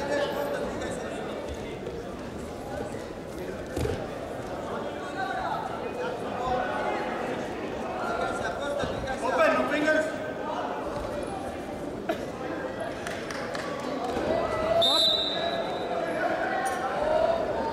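Spectators in a large echoing hall murmur and call out throughout.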